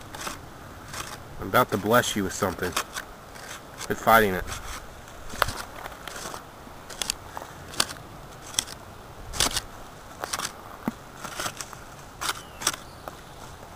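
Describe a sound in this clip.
A stick scrapes and pokes into loose dry soil.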